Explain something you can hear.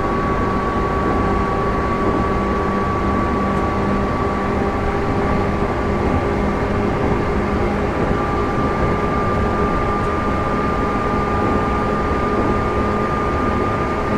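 An electric train motor whines at a steady pitch.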